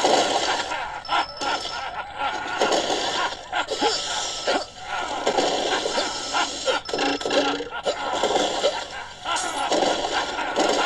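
Game music and sound effects play from a tablet's speaker.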